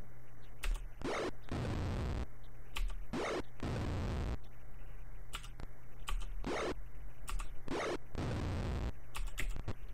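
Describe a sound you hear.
Short electronic noise bursts sound in a quick series.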